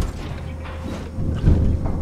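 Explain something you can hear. A flamethrower roars in short bursts.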